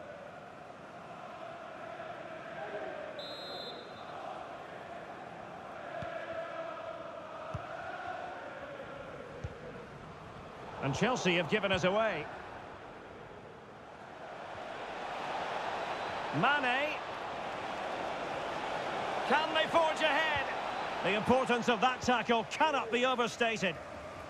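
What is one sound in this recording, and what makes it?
A large stadium crowd roars and murmurs steadily, swelling louder later on.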